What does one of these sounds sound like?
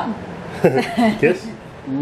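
A middle-aged woman laughs.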